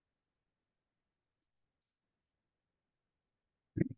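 A bottle is set down with a light knock.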